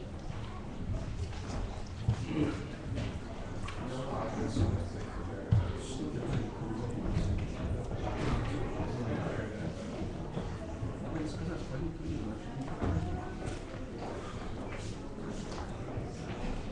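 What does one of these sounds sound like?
A crowd of men and women murmur and chat throughout a large echoing hall.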